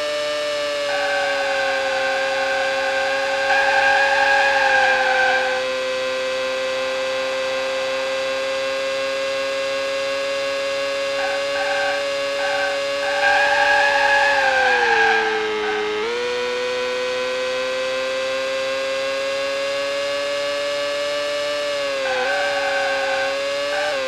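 Tyres squeal as a racing car takes corners.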